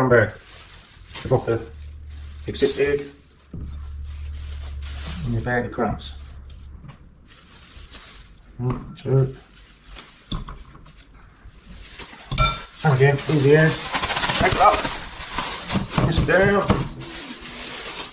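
A plastic bag rustles and crinkles as it is shaken.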